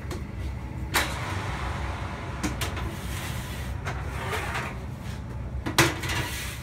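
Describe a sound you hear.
A metal baking tray clanks against an oven rack.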